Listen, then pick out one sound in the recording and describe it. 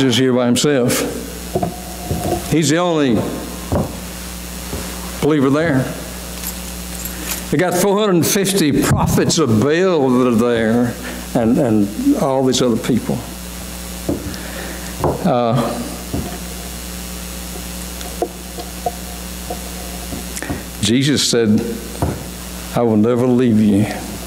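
An older man preaches with animation through a microphone, echoing in a large hall.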